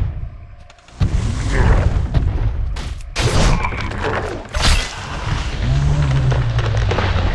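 A huge creature stomps heavily with deep thuds.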